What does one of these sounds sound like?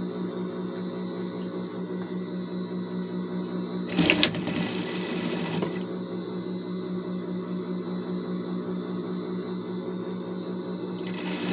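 A sewing machine motor hums steadily with a rapid pulsing whir.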